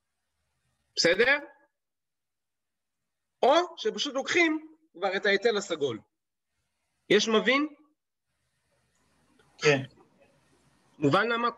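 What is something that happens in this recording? A young man speaks calmly in short phrases, close to a microphone.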